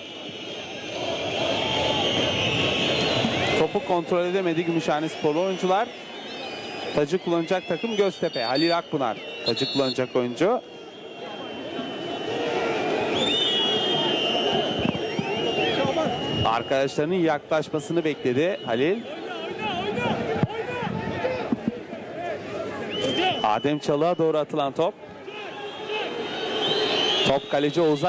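A large crowd cheers and chants in a stadium.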